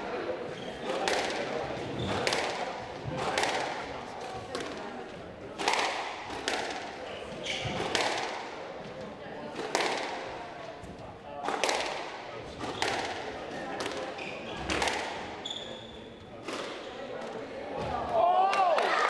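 A squash ball smacks hard against walls and rackets in a fast rally, echoing in a large hall.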